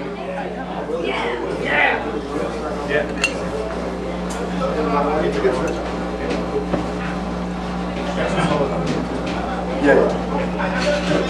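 A saxophone plays.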